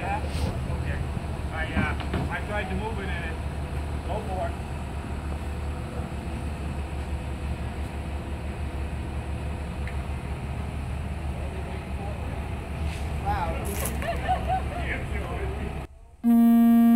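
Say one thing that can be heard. A truck engine idles with a low hum.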